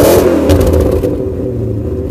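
A car engine revs briefly and settles back.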